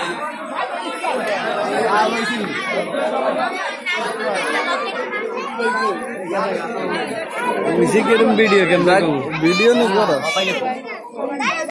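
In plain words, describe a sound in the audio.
A crowd murmurs outdoors in a busy street.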